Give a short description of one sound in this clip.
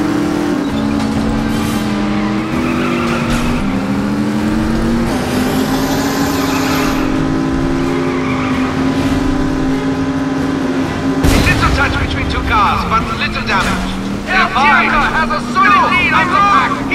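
Racing car engines roar and change pitch as the cars speed along.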